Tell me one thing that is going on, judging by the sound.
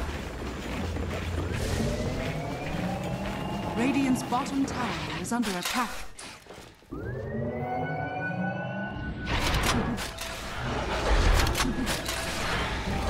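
Game battle effects crackle, clash and whoosh in quick bursts.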